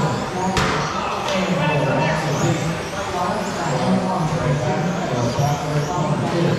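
Men talk nearby in a large echoing hall.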